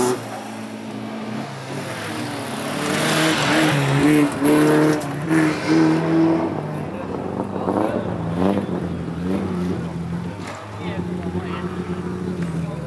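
Racing car engines rev and whine in the distance.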